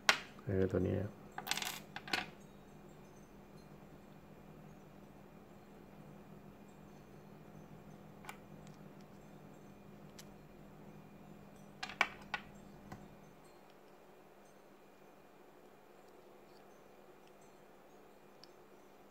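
Small metal and plastic parts click and tap.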